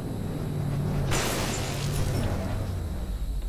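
A car crashes with a loud smash.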